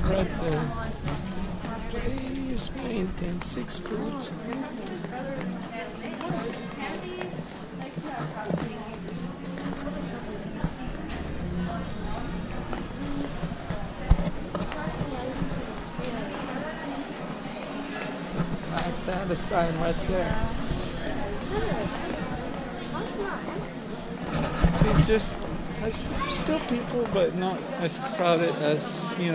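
Voices of adults and children murmur in a large indoor space.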